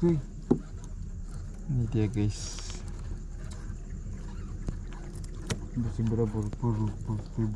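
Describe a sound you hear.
A man talks nearby in a low voice, in short bursts.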